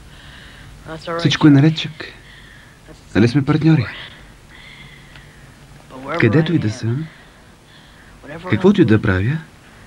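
A young man speaks with animation and close by.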